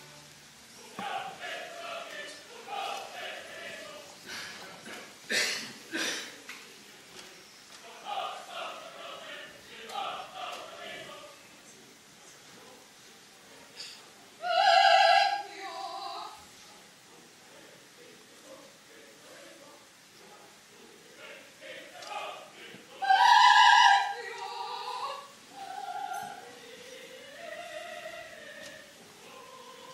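A man sings forcefully in a large, echoing hall.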